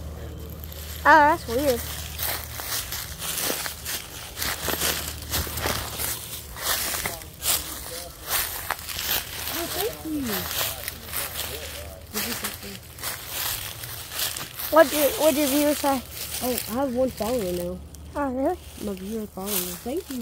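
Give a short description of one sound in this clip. A boy speaks close to the microphone with animation.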